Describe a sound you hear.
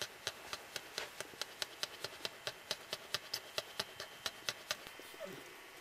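A cocker spaniel pants rapidly.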